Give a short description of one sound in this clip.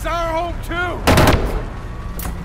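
A gunshot bangs sharply.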